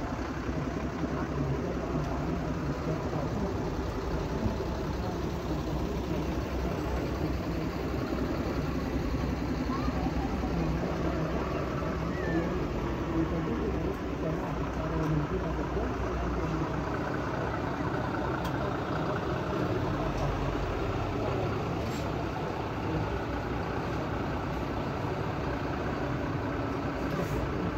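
Diesel engines of heavy trucks rumble as the trucks roll slowly past in a line.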